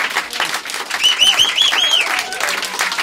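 A man cheers and whoops close to a microphone.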